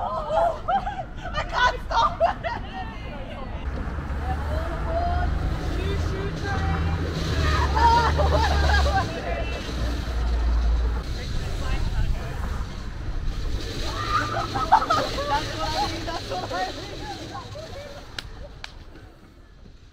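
Young women laugh and chatter close by.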